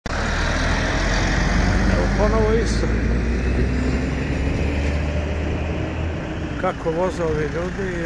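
Car engines hum as vehicles drive slowly past nearby.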